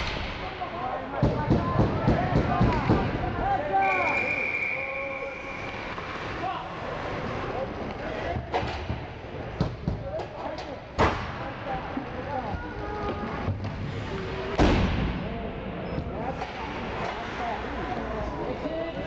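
Young players shout and call out across the rink.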